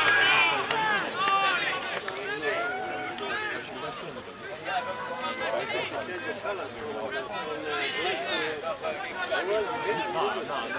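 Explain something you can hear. Several young men shout and call to each other across an open outdoor field.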